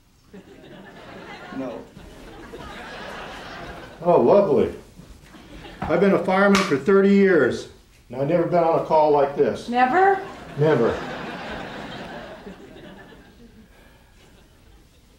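Water bubbles and churns in a whirlpool bath.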